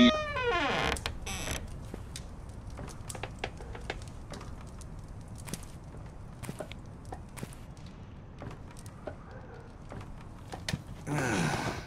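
Footsteps knock on a wooden floor.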